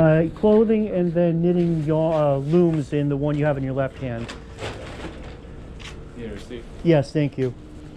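Footsteps scuff on concrete nearby.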